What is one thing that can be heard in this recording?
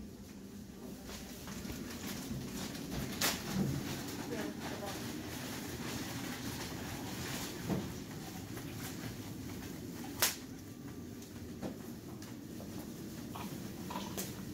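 Plastic sheeting crinkles and rustles under rhythmic pressing.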